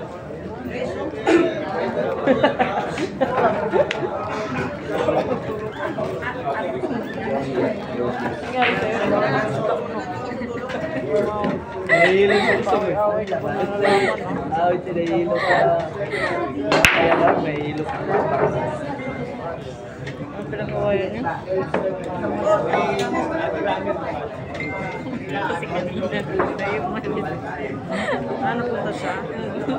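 A crowd of men chatters.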